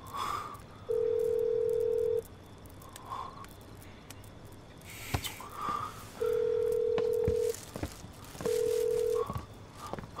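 A phone's ringing tone beeps in long, even pulses.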